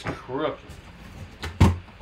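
Cardboard box flaps rustle and scrape as they are pulled open.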